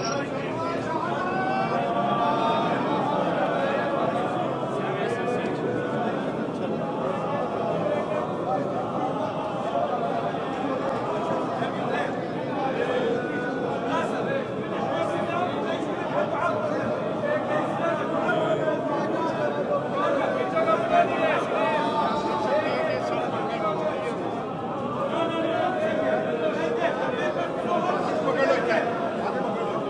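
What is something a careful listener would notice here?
A dense crowd of men talks and shouts all around, close by, in a large echoing hall.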